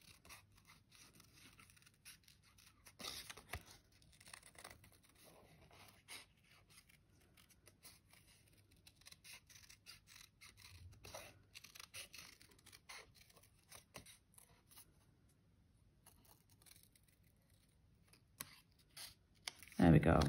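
Scissors snip through thin card with small, quiet clicks.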